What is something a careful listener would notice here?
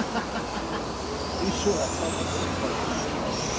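A small radio-controlled car whines as it speeds along the track.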